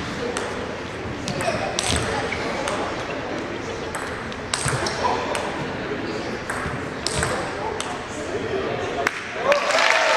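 A ping-pong ball clicks back and forth off paddles and a table in a quick rally.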